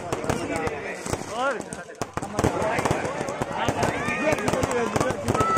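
Fireworks bang and crackle rapidly overhead.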